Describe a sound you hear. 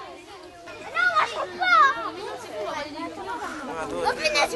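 A young boy shouts excitedly close by.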